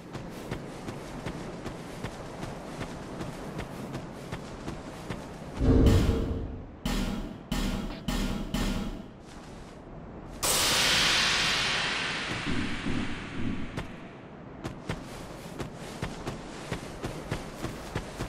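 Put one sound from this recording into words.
Footsteps thud steadily on grass as a figure runs.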